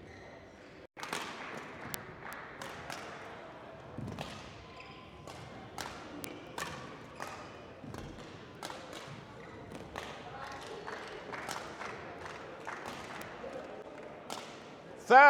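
A shuttlecock is struck back and forth with rackets in an echoing hall.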